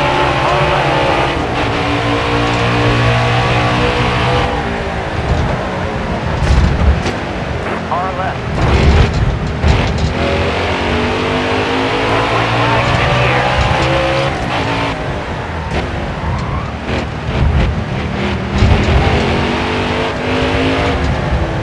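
A race car engine roars loudly, its pitch climbing and dropping as the gears change.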